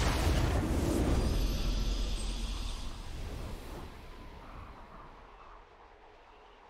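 A deep booming fanfare rings out and slowly fades.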